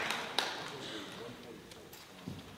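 A jazz big band's last chord rings out and fades in a large hall.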